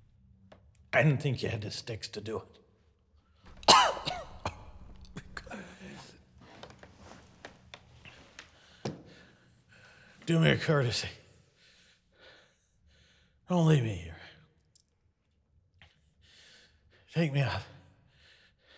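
An elderly man groans and gasps in pain close by.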